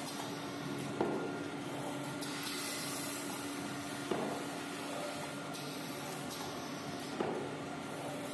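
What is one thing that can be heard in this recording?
A machine thumps sharply at regular intervals.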